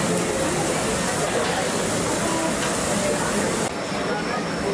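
Meat sizzles softly on a hot grill.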